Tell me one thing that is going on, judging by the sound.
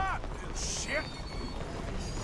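A man shouts angrily from a distance.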